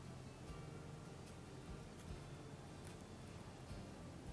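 Scissors snip through thin plastic.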